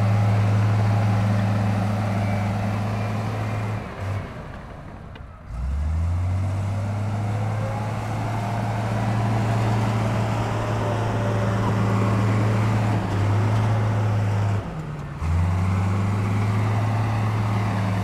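A bulldozer's diesel engine rumbles loudly, dipping and revving up again.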